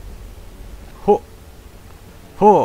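A man grunts loudly as he leaps.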